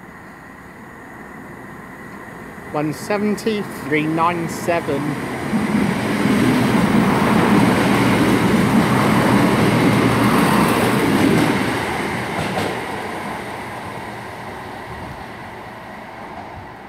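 A train approaches, rumbles past close by and slowly fades away.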